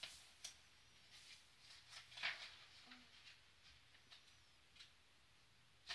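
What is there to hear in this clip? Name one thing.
A young girl reads aloud softly, close by.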